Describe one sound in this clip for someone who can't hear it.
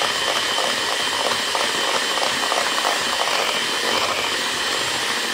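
An electric hand mixer whirs steadily, its beaters whisking cream in a bowl.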